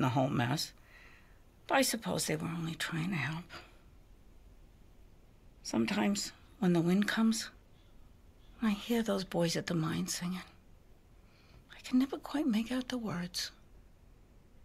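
An elderly woman speaks calmly and wistfully, close by.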